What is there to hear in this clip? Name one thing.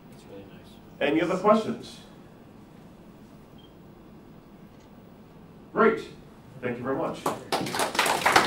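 A man speaks to a group in a room with a slight echo, pausing between short phrases.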